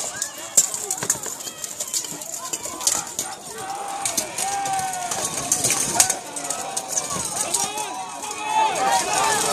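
A large crowd of spectators shouts and cheers outdoors.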